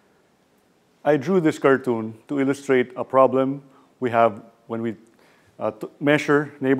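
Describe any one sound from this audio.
A man speaks calmly and clearly close to a microphone.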